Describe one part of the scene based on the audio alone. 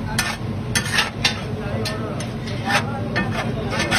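Rice drops onto a sizzling griddle with a hiss.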